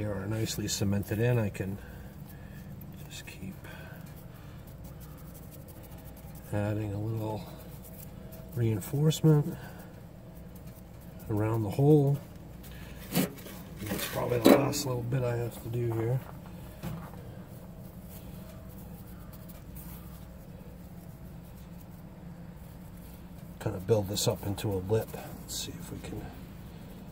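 Gloved fingers scrape and rub through damp sand.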